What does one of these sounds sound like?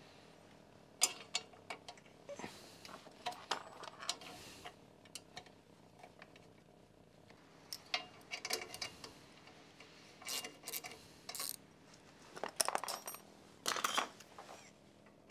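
A wrench clicks and taps against metal parts.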